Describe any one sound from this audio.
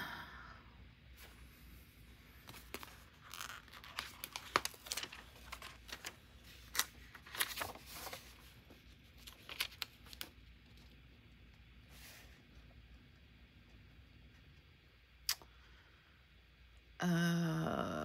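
A sheet of stickers crinkles and rustles in hands.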